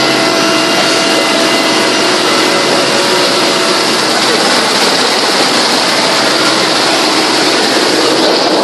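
A vehicle's engine roars loudly and steadily up close.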